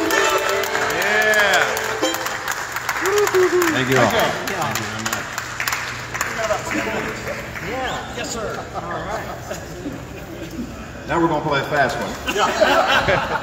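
A fiddle plays a lively tune.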